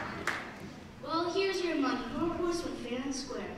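A child speaks through a microphone on a stage.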